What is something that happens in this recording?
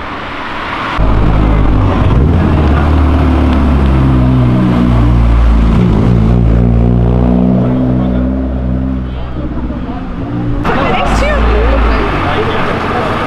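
A car engine rumbles and revs nearby.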